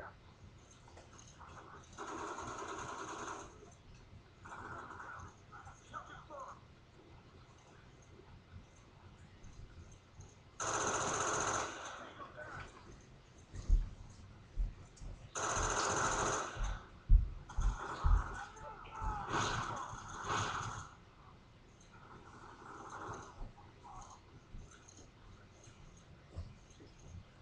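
Gunfire and explosions from a video game play through a television speaker.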